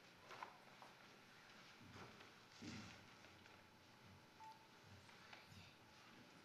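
Children's footsteps shuffle softly across the floor.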